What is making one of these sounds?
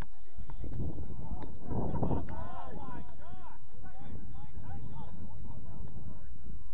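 Young players shout to each other in the distance across an open field.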